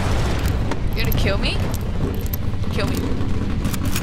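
A young woman talks into a microphone close by.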